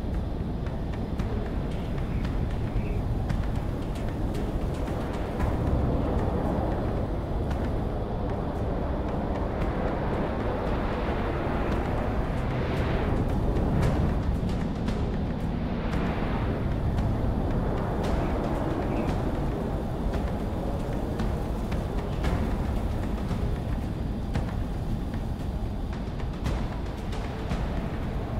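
A jet engine roars steadily as a fighter plane flies low.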